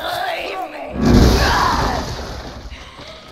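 A gun fires loudly in a burst.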